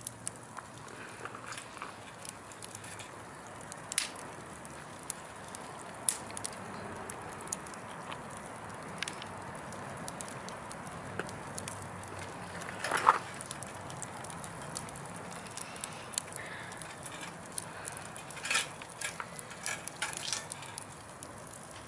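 A wood fire roars steadily.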